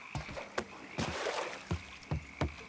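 A heavy body splashes into water.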